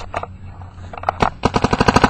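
A paintball marker fires a rapid burst of shots.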